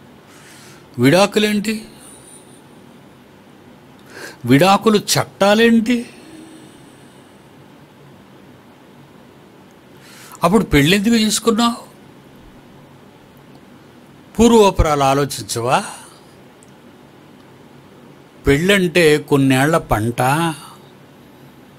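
An elderly man speaks slowly into a close microphone, in short bursts with pauses.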